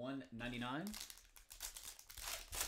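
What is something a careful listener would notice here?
A foil card pack crinkles as hands tear it open.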